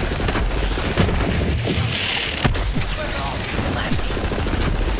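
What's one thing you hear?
Video game explosions boom.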